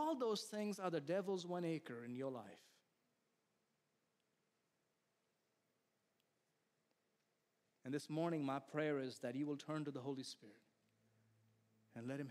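A middle-aged man speaks with feeling through a microphone, pausing between phrases.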